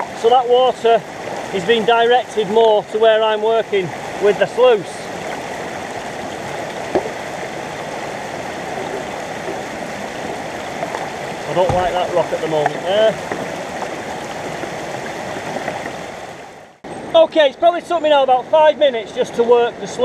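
A stream rushes and splashes over rocks close by.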